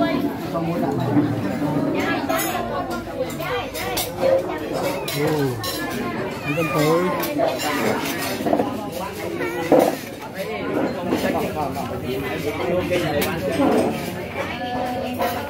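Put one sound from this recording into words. Plates and bowls clink as they are set on a table.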